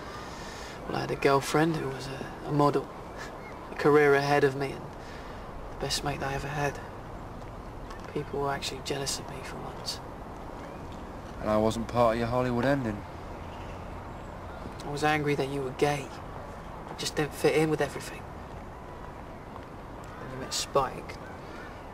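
A young man speaks calmly in short phrases close by.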